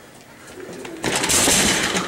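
Chair wheels rattle and roll along a hard floor.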